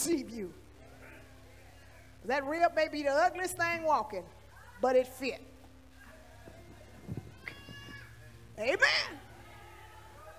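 A woman preaches with animation through a microphone and loudspeakers in a large echoing hall.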